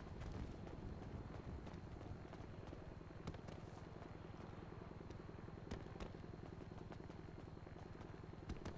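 Footsteps run quickly on paving.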